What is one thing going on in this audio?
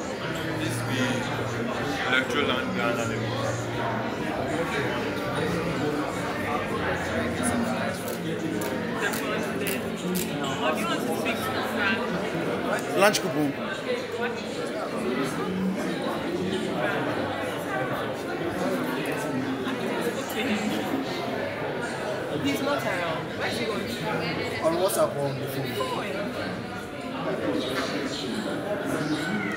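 A crowd of people chatters indoors throughout.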